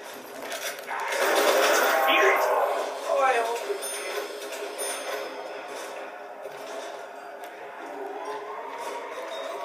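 Video game sound plays loudly through a television speaker.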